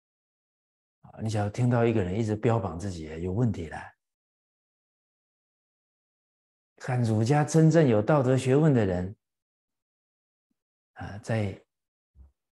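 An elderly man speaks calmly and clearly into a microphone, with pauses between phrases.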